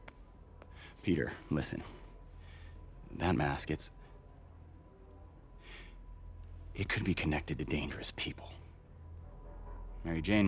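A man speaks calmly and seriously, close by.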